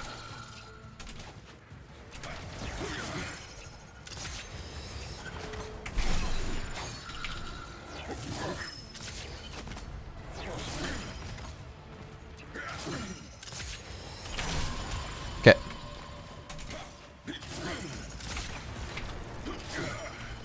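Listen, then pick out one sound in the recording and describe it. Swift whooshes sweep past as a warrior leaps and dashes through the air.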